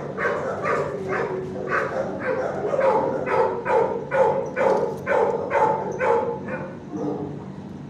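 A dog barks repeatedly nearby.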